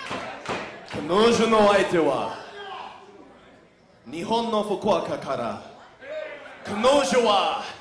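A man announces loudly through a microphone over loudspeakers.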